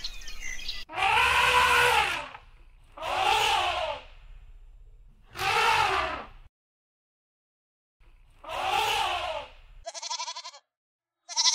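An elephant trumpets loudly several times.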